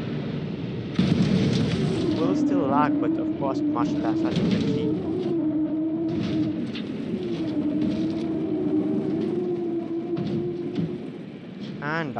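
Crumpled metal scrapes and grinds as the wrecks skid across the ground.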